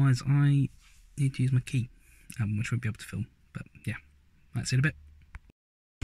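A young man talks close up, casually.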